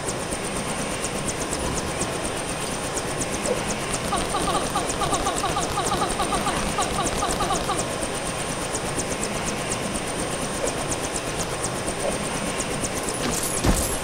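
A helicopter's rotor thumps and whirs steadily.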